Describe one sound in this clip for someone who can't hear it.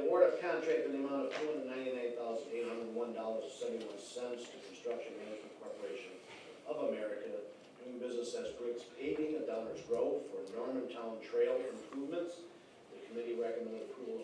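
A middle-aged man reads out calmly into a microphone.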